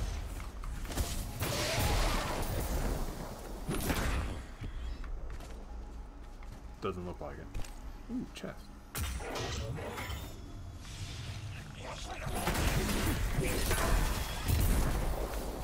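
Loud blasts and energy bursts ring out in a video game.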